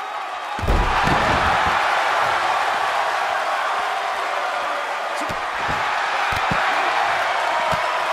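A crowd cheers loudly and steadily.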